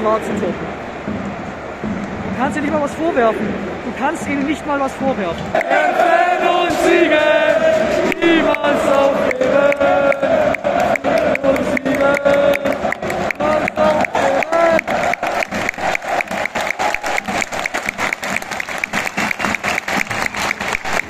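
A large stadium crowd chants loudly in an open, echoing arena.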